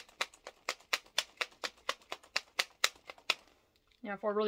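Powder rattles rhythmically inside a plastic shaker being shaken.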